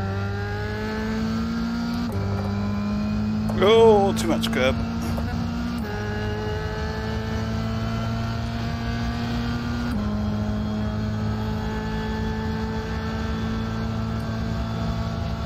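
A racing car engine whines at high revs, climbing steadily in pitch and dropping briefly at each gear change.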